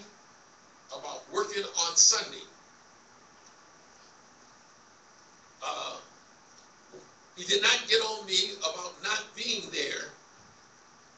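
A man speaks with emphasis into a microphone in a large room, heard over a loudspeaker, in short bursts with pauses.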